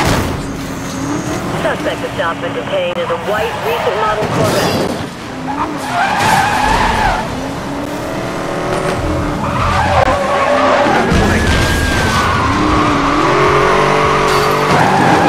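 A sports car engine roars and revs hard.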